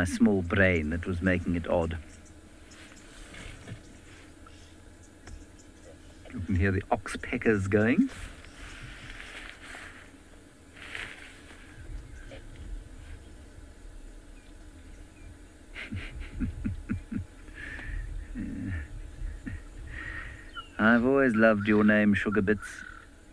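A large bird calls loudly in short harsh bursts.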